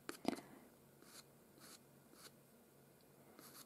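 A pencil scratches softly across paper in short strokes.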